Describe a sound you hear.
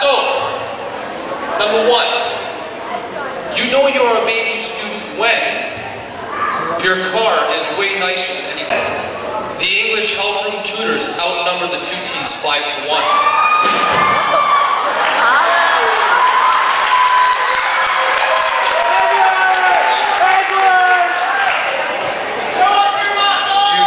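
A second man answers into a microphone over loudspeakers.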